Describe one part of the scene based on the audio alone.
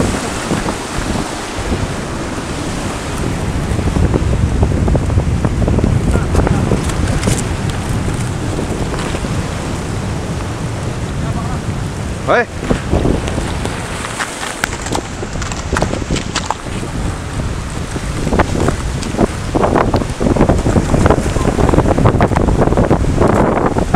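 Waves crash and surge over rocks.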